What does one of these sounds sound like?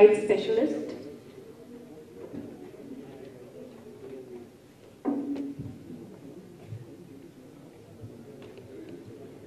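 A young woman speaks into a microphone over loudspeakers in a large echoing hall.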